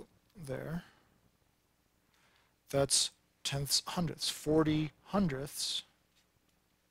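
A man speaks calmly and closely into a microphone, explaining.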